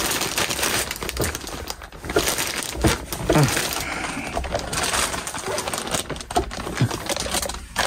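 A wooden bed base creaks as it is lifted.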